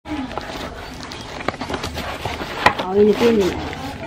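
Cardboard packaging rips and crackles as it is torn open.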